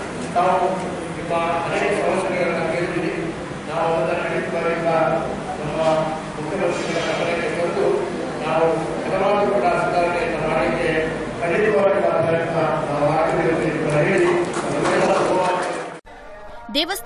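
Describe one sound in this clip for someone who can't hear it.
A middle-aged man reads out steadily into a microphone, heard through a loudspeaker.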